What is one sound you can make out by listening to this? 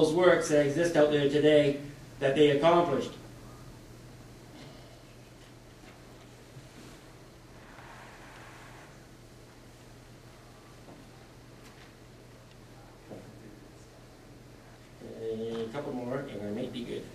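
A man speaks over a loudspeaker in a large room, pausing between phrases.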